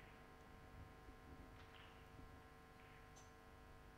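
A cue strikes a snooker ball with a soft click.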